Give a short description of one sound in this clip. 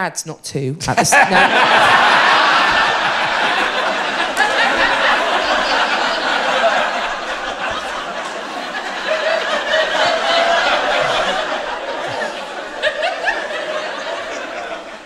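An audience laughs loudly throughout a hall.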